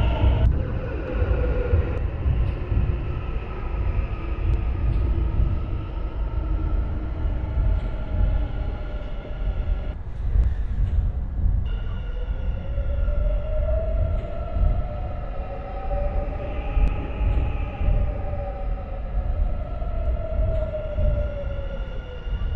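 An electric train rolls slowly along the track with a low rumble.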